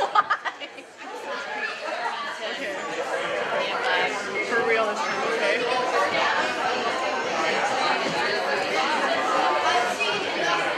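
A crowd of people chatter in a large room.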